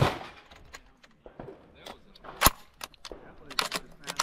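A shotgun action clacks as shells are loaded.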